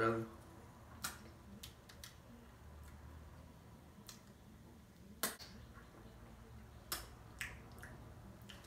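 A young man sucks on a lollipop.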